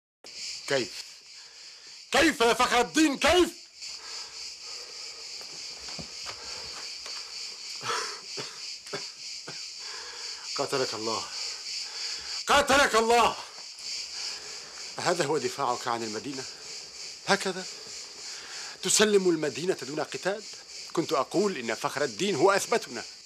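A middle-aged man speaks gravely and close by.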